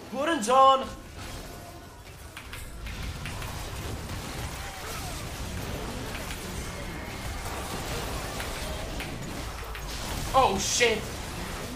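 A young man speaks excitedly into a close microphone.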